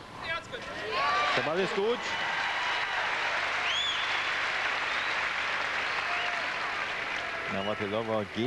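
A crowd applauds and cheers in a large hall.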